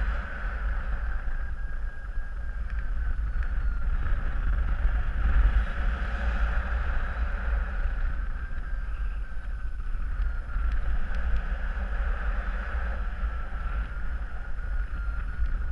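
Wind rushes and buffets steadily past in the open air.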